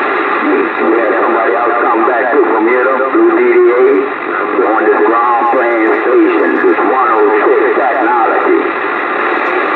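A radio plays a garbled, warbling transmission through its speaker.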